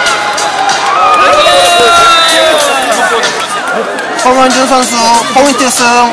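A crowd of people shouts and cheers in a large echoing hall.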